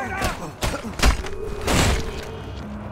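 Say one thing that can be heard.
Punches and thuds land in a brawl.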